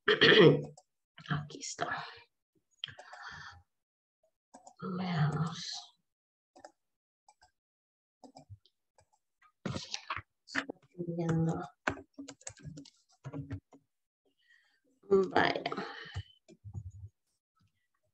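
A woman speaks through an online call, in bursts with pauses.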